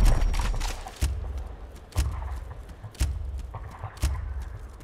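A countdown timer ticks once every second.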